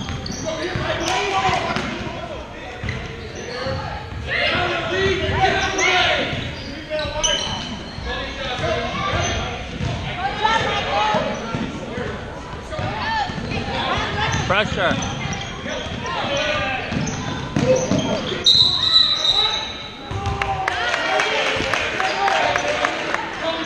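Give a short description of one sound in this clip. A crowd of spectators cheers and talks nearby.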